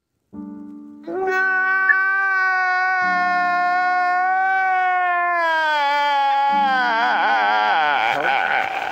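An older man wails loudly in a long, drawn-out cry.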